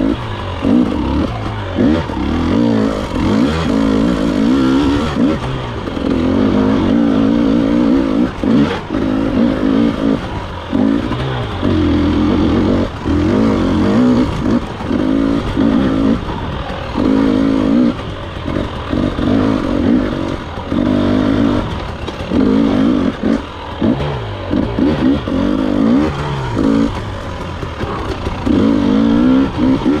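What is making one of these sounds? A dirt bike engine revs up and down loudly, close by.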